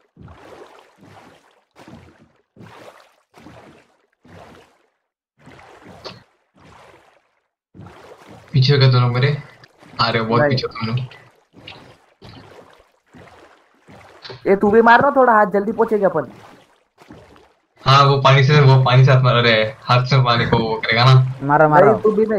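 Water splashes softly in a steady rhythm as a small boat is rowed.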